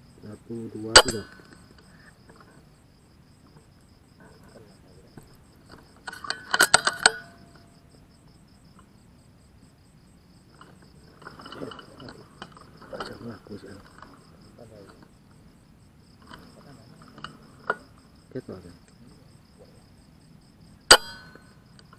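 A rifle shot cracks sharply, close by.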